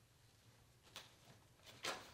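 A stroller's frame clicks and snaps as it is handled.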